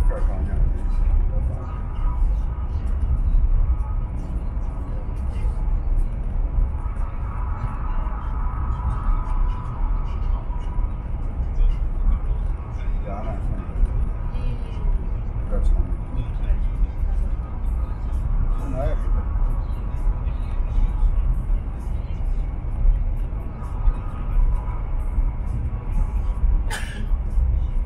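A train rumbles steadily at speed, heard from inside a carriage.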